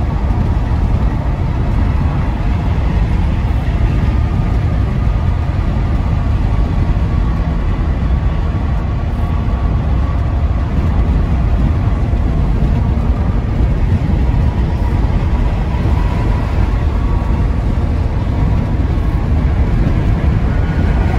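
Tyres roar steadily on a highway, heard from inside a car.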